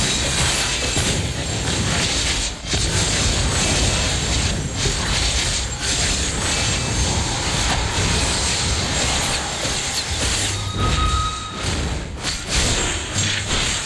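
Fiery spell blasts crackle and boom in a game battle.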